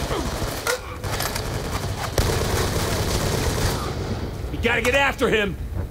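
A rifle fires several rapid shots.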